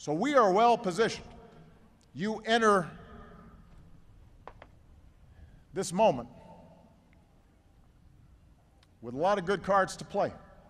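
A man speaks slowly and deliberately into a microphone, with echoing pauses outdoors.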